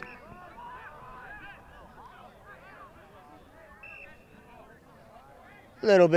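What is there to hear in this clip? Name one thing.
Young rugby players shout calls to each other at a distance, outdoors in the open.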